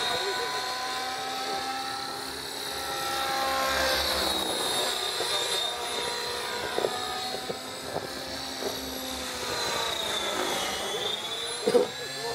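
An electric radio-controlled helicopter whines overhead, its rotor pitch rising and falling as it manoeuvres.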